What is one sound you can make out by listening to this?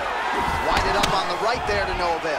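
A punch lands with a dull thud.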